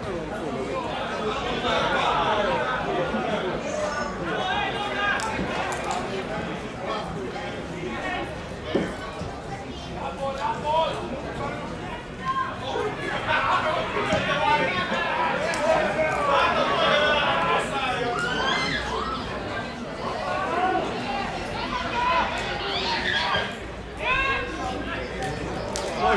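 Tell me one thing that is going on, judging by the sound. Young men shout to one another across an open field outdoors.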